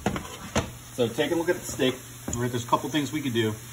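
Meat sizzles in a hot pan.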